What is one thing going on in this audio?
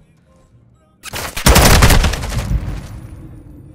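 Gunshots ring out in a rapid burst.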